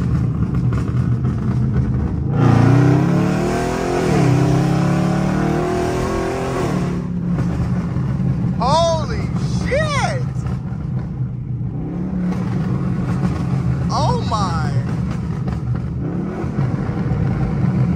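A car engine rumbles steadily from inside the cabin.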